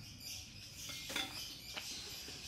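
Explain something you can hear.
A plastic bin knocks as it is moved.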